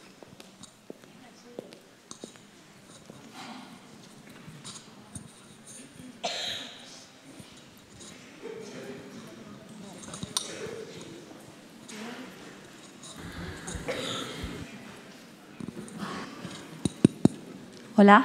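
An audience murmurs and chatters quietly in a large echoing hall.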